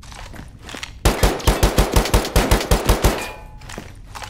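A pistol fires a rapid string of loud shots.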